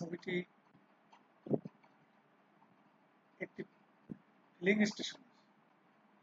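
A man speaks briefly and haltingly over an online call.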